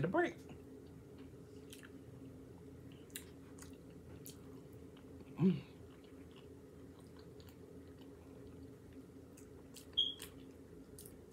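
A woman chews food with soft, wet mouth sounds close to a microphone.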